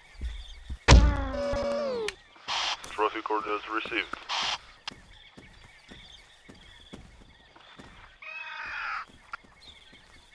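A wounded creature shrieks and wails.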